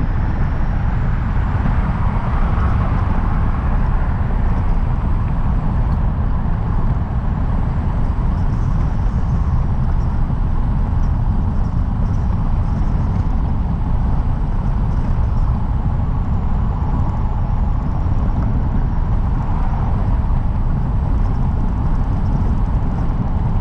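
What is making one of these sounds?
Wind rumbles loudly and steadily against a microphone on a moving car.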